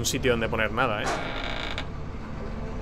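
A heavy metal door slides open with a grinding rumble.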